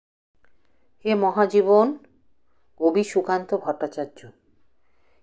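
A middle-aged woman speaks calmly and close by, in short phrases.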